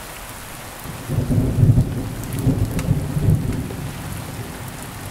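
Thunder rumbles heavily in the distance and slowly fades.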